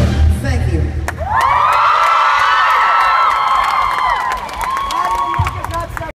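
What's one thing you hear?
A crowd cheers and shrieks.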